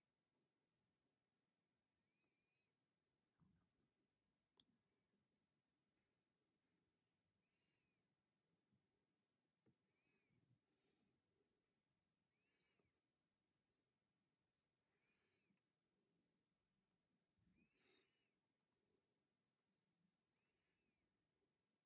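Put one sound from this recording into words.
Tiny glass beads click softly against a needle.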